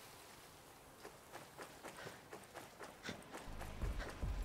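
Footsteps crunch over dirt and gravel at a steady walking pace.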